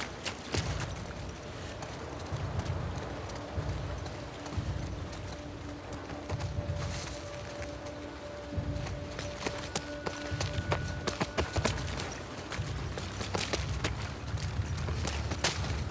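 Footsteps splash quickly on wet ground.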